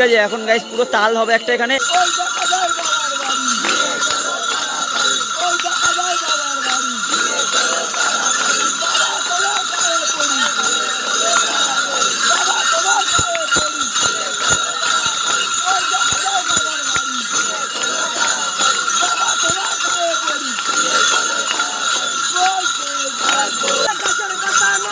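Small metal bells jingle and rattle.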